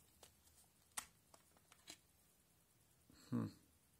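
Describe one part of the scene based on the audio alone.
A plastic phone cover clicks and snaps.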